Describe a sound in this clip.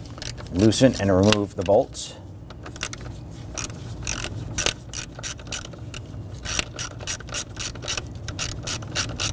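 Plastic parts click and rattle as a connector is worked loose.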